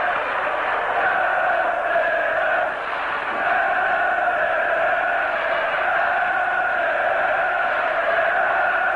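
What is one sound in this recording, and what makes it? A large crowd of fans chants loudly in unison.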